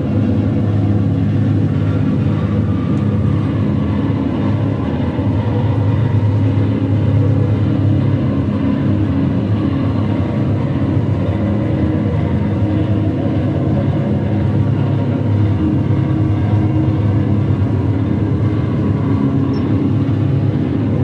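A bass guitar plays low, heavy notes.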